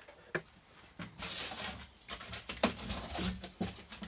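Aluminium foil crinkles as it is handled.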